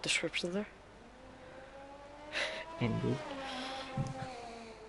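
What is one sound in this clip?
A racing car engine whines at high revs, its pitch slowly rising and falling.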